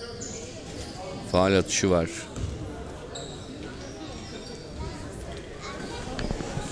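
Spectators murmur softly in an echoing hall.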